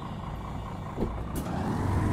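Bus doors close with a short thump.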